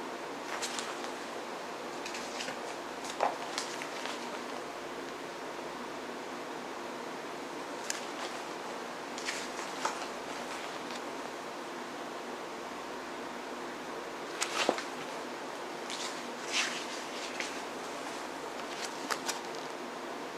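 Book pages rustle and flip close by.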